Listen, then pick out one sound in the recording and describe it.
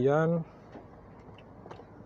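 A button on a car dashboard clicks.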